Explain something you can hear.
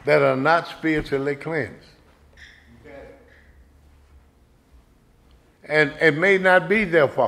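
An elderly man speaks calmly and with emphasis into a microphone, pausing between phrases.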